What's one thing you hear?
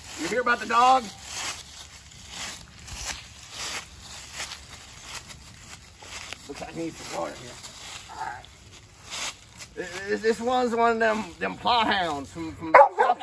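A man talks calmly and close by, his voice slightly muffled.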